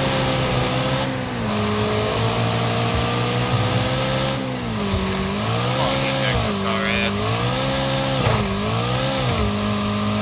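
A car engine roars and revs up and down through gear changes.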